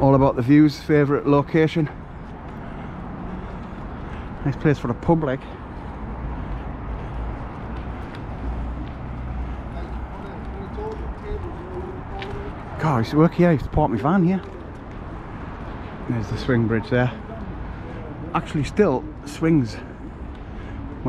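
A man talks casually close to the microphone.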